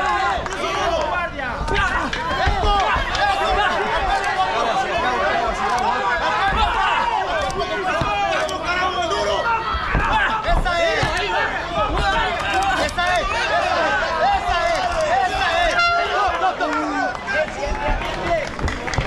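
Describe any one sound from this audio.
A crowd of spectators shouts and cheers loudly.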